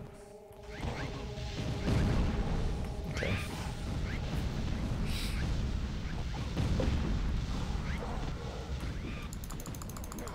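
Fiery blasts crackle and boom in a game battle.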